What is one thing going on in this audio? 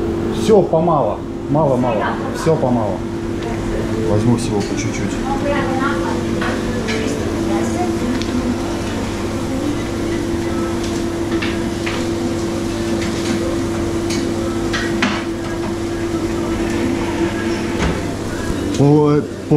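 Dishes and utensils clatter and knock.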